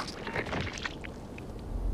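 A heavy weapon thuds into a body.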